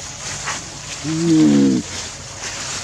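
A young monkey lets out a short squeal.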